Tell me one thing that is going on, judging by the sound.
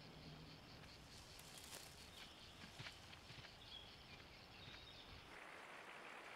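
A deer rustles through grass as it grazes.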